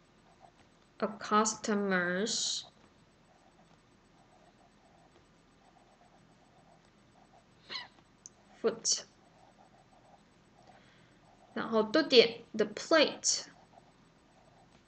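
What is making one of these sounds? A woman speaks slowly and clearly into a microphone, as if dictating.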